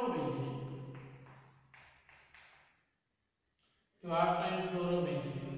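A man speaks calmly, as if teaching.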